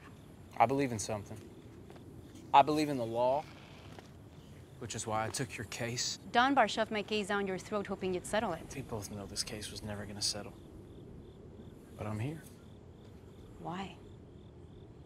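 A young man speaks quietly and earnestly, close by.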